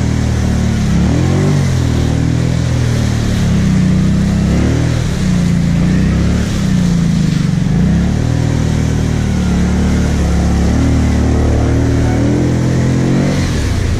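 An ATV engine revs up and down while churning through deep mud.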